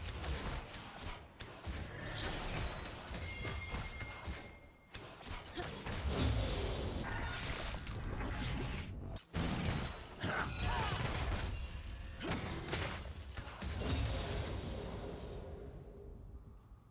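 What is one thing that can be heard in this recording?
Game combat effects clash, zap and crackle in quick bursts.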